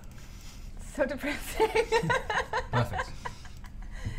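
A young woman laughs heartily, close to a microphone.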